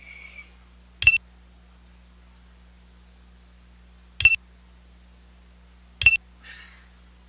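Short electronic beeps sound now and then.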